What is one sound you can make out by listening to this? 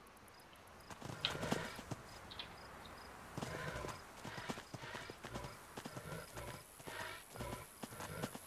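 Footsteps thud quickly on soft ground.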